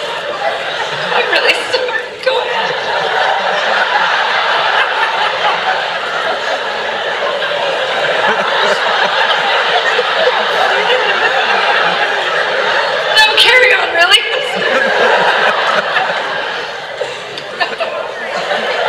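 A crowd laughs and cheers.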